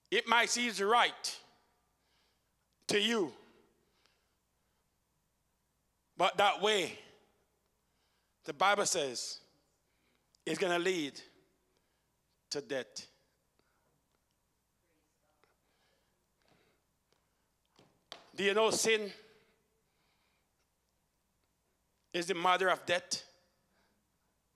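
A man preaches with animation into a microphone, in short bursts with pauses, over a loudspeaker.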